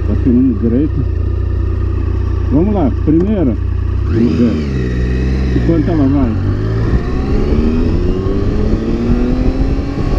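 A Triumph Tiger 1050 three-cylinder motorcycle accelerates in first gear, its engine revving higher and higher.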